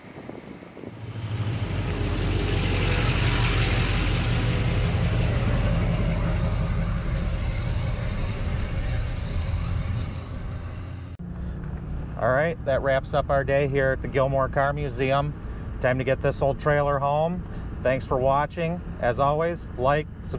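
A vehicle engine rumbles up close as it drives.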